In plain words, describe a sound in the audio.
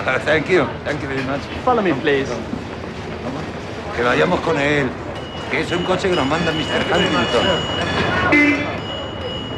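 A group of men and women talk with animation at close range.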